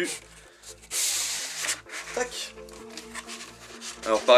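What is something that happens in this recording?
A stiff sheet of paper rustles as it unrolls.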